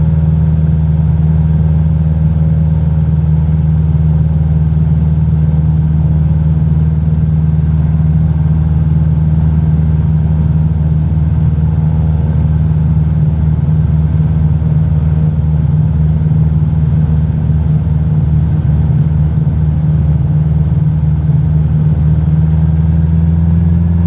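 A small propeller plane's engine drones steadily from inside the cockpit.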